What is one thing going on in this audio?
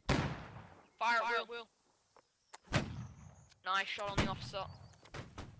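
Muskets fire in loud sharp bangs.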